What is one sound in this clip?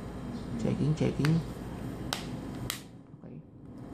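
Fingers tap and click against a phone's casing.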